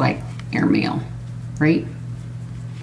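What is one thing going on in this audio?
A woman speaks calmly and close to a microphone, in short bursts.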